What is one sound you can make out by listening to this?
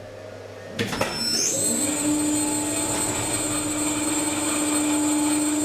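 A lift motor starts and hums steadily.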